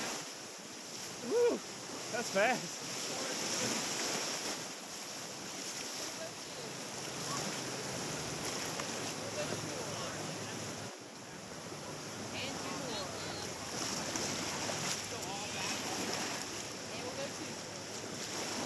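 River rapids rush and splash loudly around a raft.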